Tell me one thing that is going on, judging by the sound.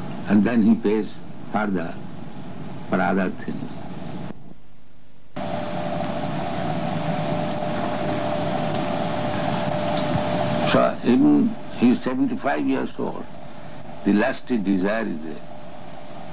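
An elderly man speaks calmly in short phrases, heard close by through a microphone.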